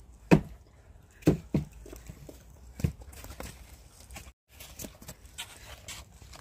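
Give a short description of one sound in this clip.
Tomatoes snap off their stems as they are picked.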